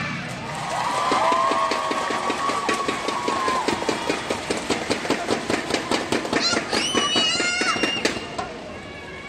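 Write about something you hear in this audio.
Drums beat a rapid, even rhythm in a large echoing hall.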